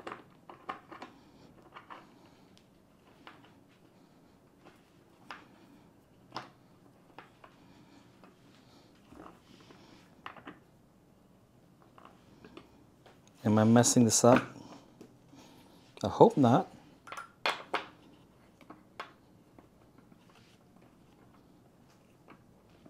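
Plastic and metal parts click and rattle as they are fitted together by hand.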